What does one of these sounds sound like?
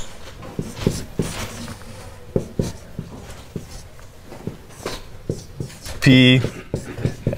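Chalk taps and scratches against a board.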